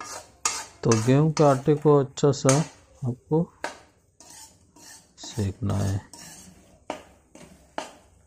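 A metal spoon scrapes and stirs in a metal pan.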